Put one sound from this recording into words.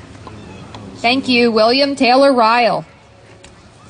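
A young woman speaks through a microphone outdoors.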